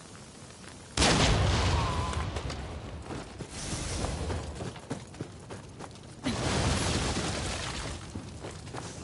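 A loud blast bursts and booms, then slowly fades.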